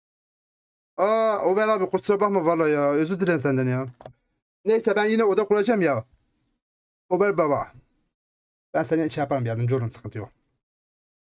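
A young man speaks with animation into a close microphone.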